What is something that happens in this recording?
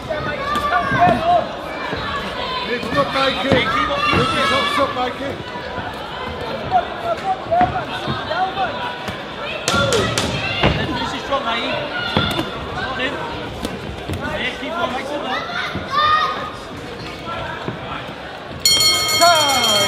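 A crowd shouts and cheers loudly.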